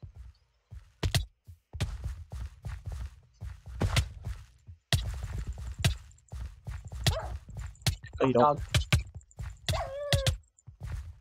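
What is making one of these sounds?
Sword hits land with quick thuds.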